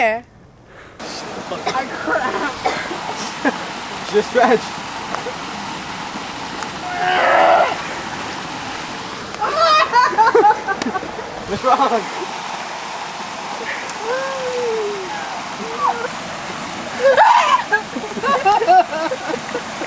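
Water splashes around a young man's legs.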